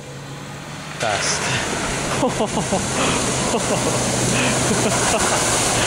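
Water splashes and sprays heavily as a vehicle drives through a flooded track.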